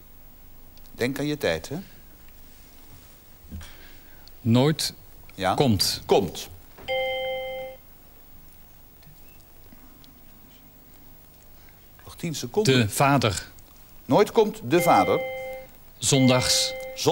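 A middle-aged man speaks thoughtfully into a microphone, in short bursts.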